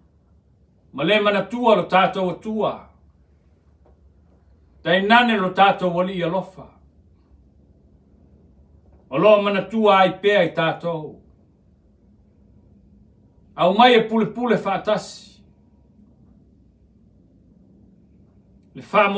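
A middle-aged man speaks calmly and clearly into a microphone, in short phrases with pauses between them.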